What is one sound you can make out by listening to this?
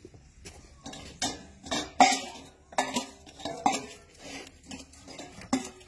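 Metal food bowls clatter and clank.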